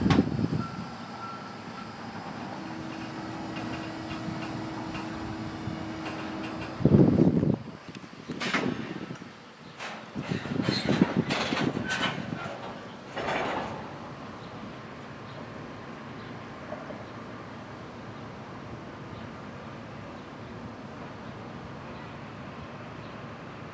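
A freight train rolls slowly past, its wheels rumbling and clacking on the rails.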